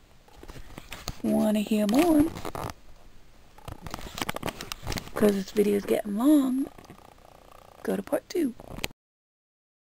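A handheld phone rustles and bumps as it is moved around.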